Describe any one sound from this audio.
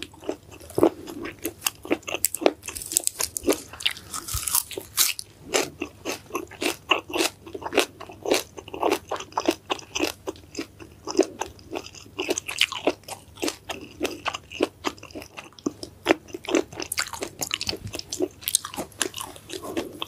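Fresh herb stems snap and rustle in a woman's hands.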